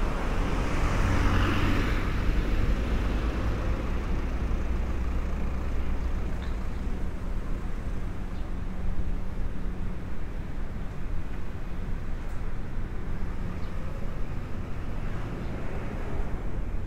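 Traffic hums steadily on a nearby road outdoors.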